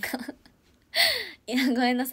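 A young woman laughs brightly.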